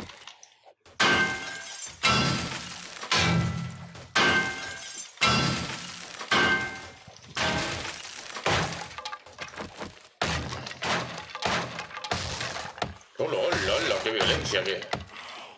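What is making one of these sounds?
A tool strikes a wooden door with repeated sharp knocks.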